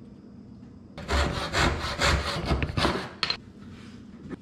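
A hand saw cuts wood with quick strokes.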